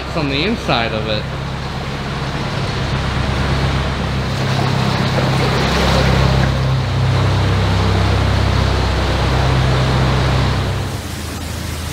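A boat engine chugs steadily, echoing in a tunnel.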